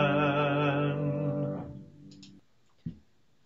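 A woman sings a held note through an online call.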